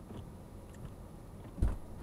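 A windshield wiper sweeps across the glass.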